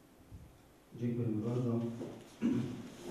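A man speaks loudly in a room.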